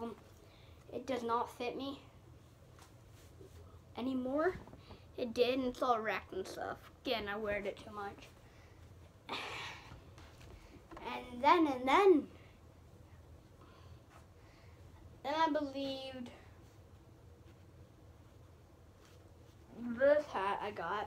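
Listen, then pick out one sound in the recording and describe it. A young girl talks with animation close by, in bursts with pauses.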